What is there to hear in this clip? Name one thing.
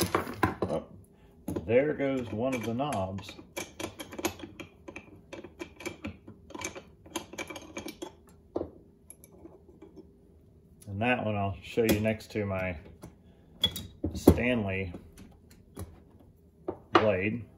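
Small metal parts click and clink on a wooden bench.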